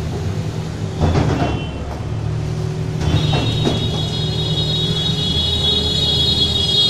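Dirt and debris tumble from a loader bucket into a metal trailer with thuds and rattles.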